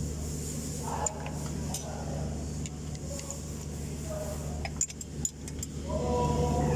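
A metal tool clicks and scrapes against a fan hub.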